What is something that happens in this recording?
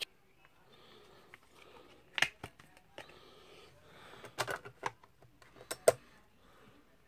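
A disc snaps out of a plastic case with sharp clicks.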